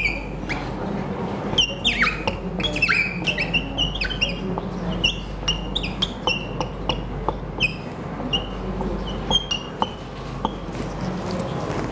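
A marker squeaks across a whiteboard in short strokes.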